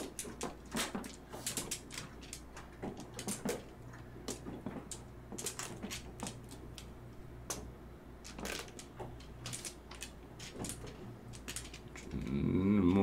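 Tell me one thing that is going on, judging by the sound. Mahjong tiles click and clack against each other on a table.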